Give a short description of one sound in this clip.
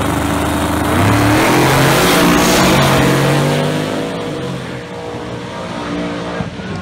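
Two race cars roar past at full throttle and fade into the distance.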